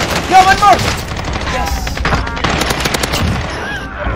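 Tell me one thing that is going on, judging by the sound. A rifle fires several quick shots.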